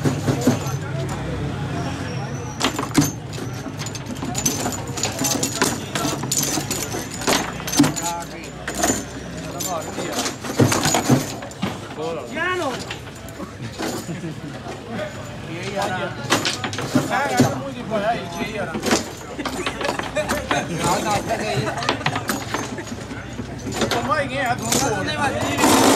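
Players strike a foosball ball with sharp clacks.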